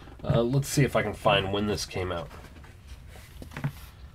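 Paper pages rustle and flip as a book is opened.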